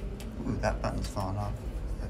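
An elevator button clicks as it is pressed.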